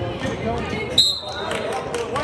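A whistle blows sharply once.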